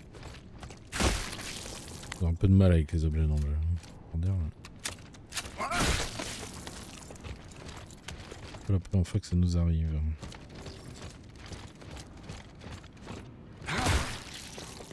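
A heavy boot stomps down with a wet, crunching splat.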